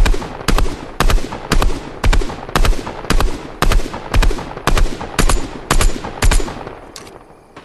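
Rapid gunshots fire in quick bursts.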